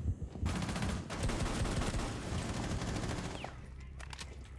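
A rifle fires a quick burst of gunshots.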